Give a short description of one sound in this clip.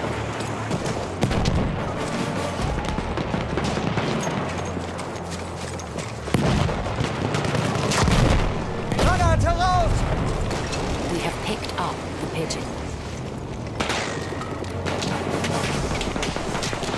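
Gunfire and explosions rumble in a noisy battle.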